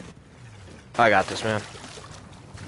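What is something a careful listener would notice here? Water splashes loudly as a man dives in.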